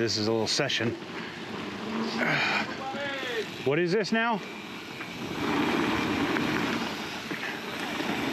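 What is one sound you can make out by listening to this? Wind rushes steadily past the rider.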